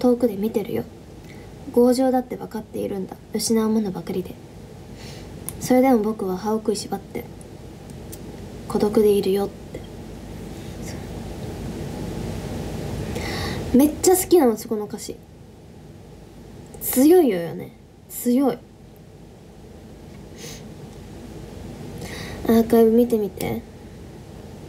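A young woman talks softly and casually, close to a microphone, in short bursts with pauses.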